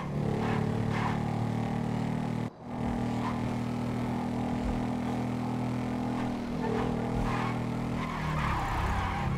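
A motorcycle engine roars steadily at speed, cutting out briefly.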